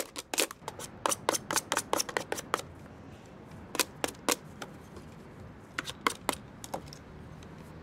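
Plastic clicks and snaps as a desk phone is pried apart by hand.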